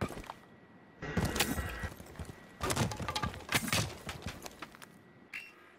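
A wooden barricade is smashed and splinters.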